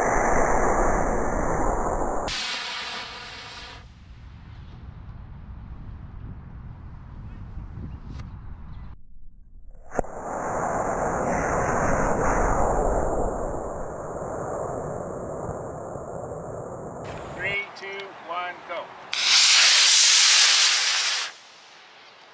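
A model rocket motor roars with a loud whooshing hiss.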